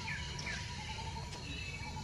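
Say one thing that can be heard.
A baby monkey squeaks softly close by.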